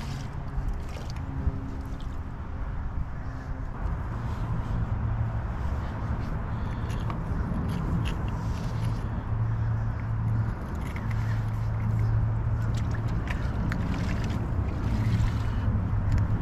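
Small shells click softly as they are pressed into wet mortar.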